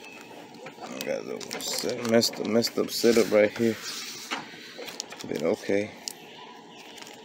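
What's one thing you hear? Foil card packs crinkle as hands shuffle them.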